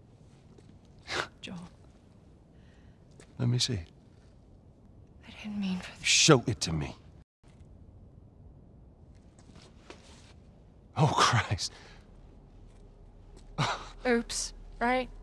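A woman speaks softly.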